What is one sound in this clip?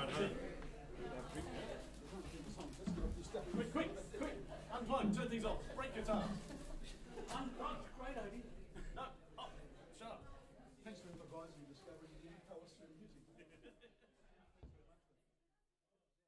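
Several men talk casually among themselves nearby.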